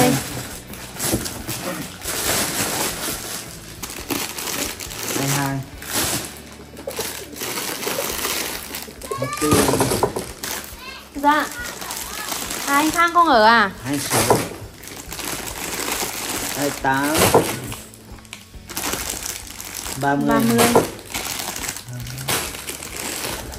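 Plastic packets rustle and crinkle as they are handled.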